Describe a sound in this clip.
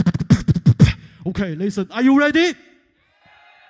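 A young man beatboxes a gliding, wobbling bass line into a microphone.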